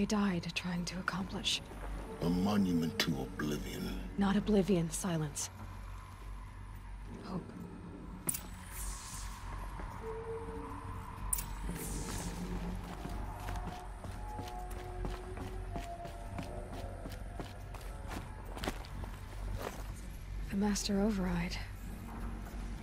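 A young woman speaks calmly and earnestly.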